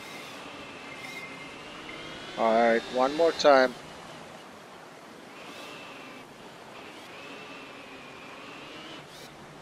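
A small motor hums and whines as a toy car drives over rough ground.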